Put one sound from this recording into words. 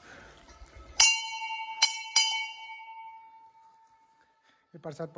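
A metal bell rings loudly and rings on.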